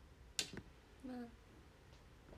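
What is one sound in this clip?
A young woman speaks briefly and quietly, close by.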